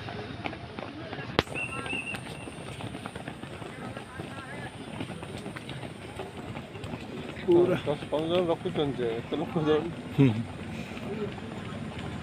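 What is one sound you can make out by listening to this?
Several runners' feet patter on a dirt track.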